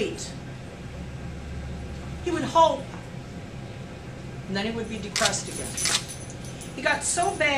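An elderly woman speaks calmly, close by.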